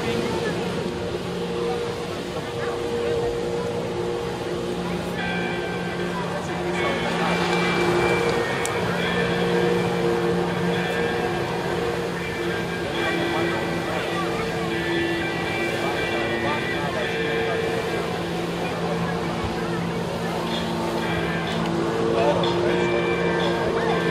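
A personal watercraft engine drones under high throttle.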